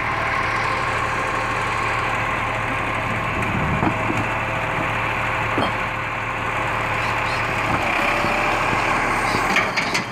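A truck engine idles steadily nearby.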